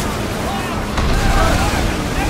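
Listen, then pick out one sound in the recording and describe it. Timbers crash as one ship rams another.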